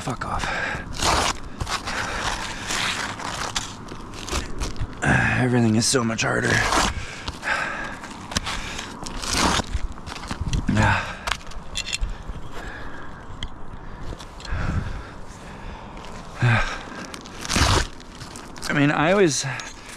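A utility knife scrapes and slices through roofing shingles.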